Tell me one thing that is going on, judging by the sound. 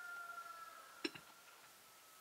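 A metal rod clanks sharply against the rim of a clay oven.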